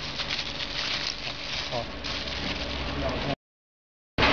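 Plastic film crinkles as a hand handles it.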